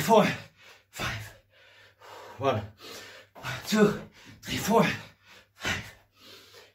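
Bare feet thud on a floor.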